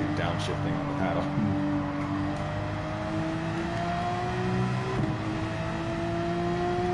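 A race car engine roars at high revs, its pitch climbing steadily.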